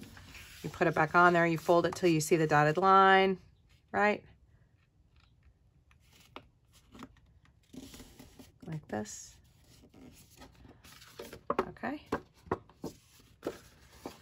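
Paper rustles and crinkles as it is folded and smoothed.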